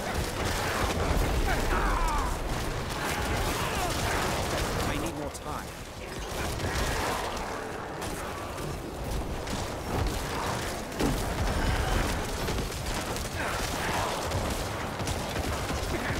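Crashes, blasts and booms of fighting go on without a break.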